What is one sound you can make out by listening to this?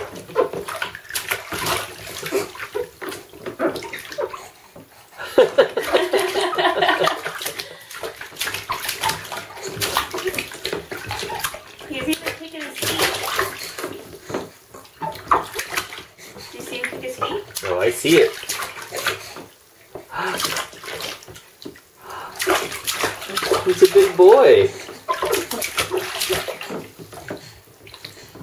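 A baby babbles close by.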